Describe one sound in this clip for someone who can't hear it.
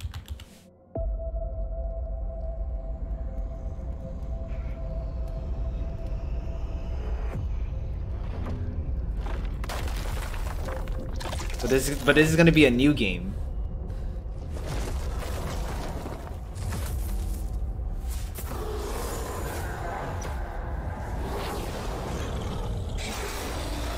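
Deep, dramatic rumbling music plays steadily.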